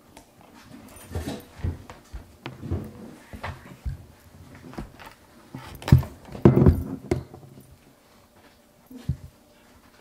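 Bottles and objects knock and clatter on a counter.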